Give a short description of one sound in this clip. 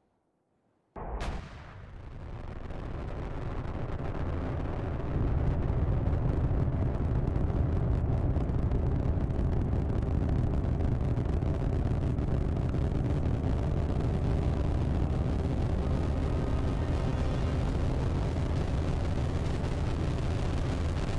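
An engine starts with a burst and roars loudly and steadily.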